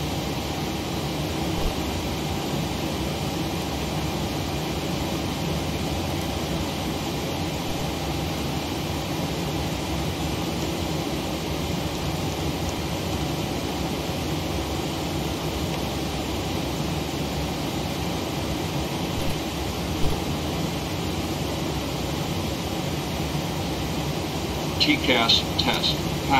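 Jet engines idle with a steady low hum.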